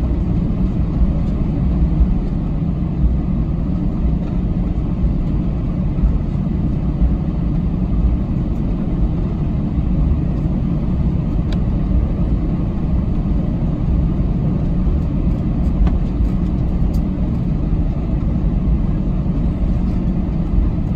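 A plane's tyres roll and thump over the taxiway joints.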